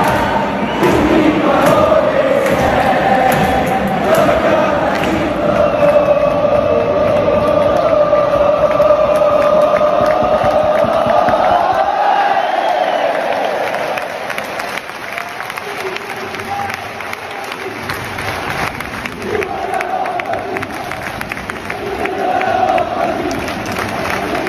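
Fans clap their hands in rhythm nearby.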